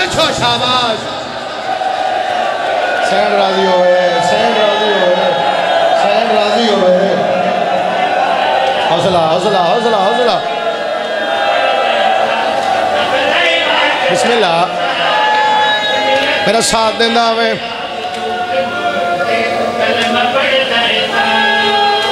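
A man chants loudly through a microphone and loudspeakers.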